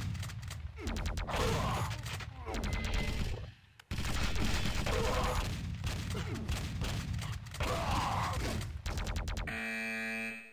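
Rapid gunshots fire in loud, quick bursts.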